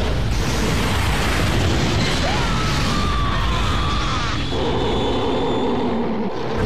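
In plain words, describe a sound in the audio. Heavy explosions rumble and boom.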